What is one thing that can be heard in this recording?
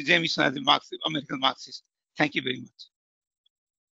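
A man speaks calmly and closely into a microphone, then pauses.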